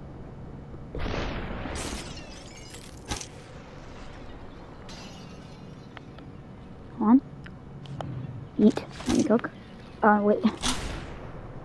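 Glass shatters into pieces.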